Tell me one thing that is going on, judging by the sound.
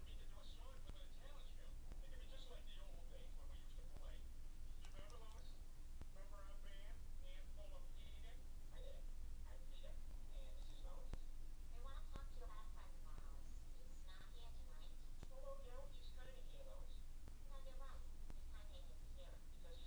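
Buttons on a game controller click softly.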